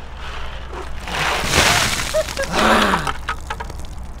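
Ice water splashes and pours down onto a man.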